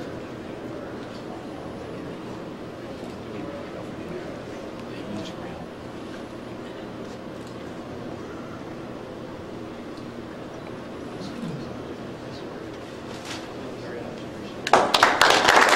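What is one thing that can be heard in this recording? Men murmur quietly in a large room.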